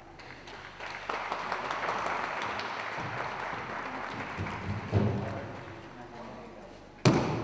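Spectators clap and cheer in an echoing hall.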